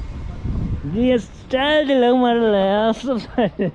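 A man laughs loudly nearby.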